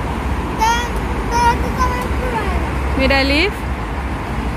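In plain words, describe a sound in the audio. A young girl speaks briefly close by.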